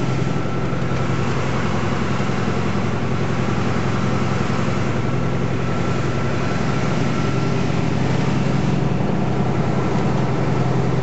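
A heavy engine rumbles steadily from a moving vehicle.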